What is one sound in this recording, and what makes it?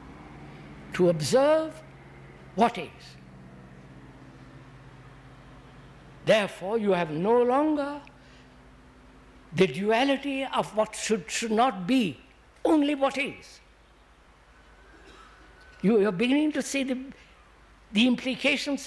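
An elderly man speaks slowly and thoughtfully into a microphone, with long pauses.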